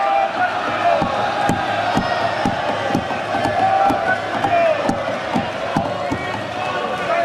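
Hands bang on desks in a steady beat.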